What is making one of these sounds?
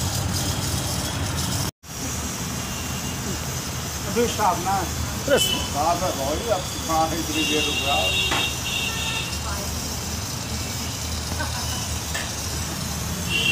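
Steam hisses steadily from a pipe.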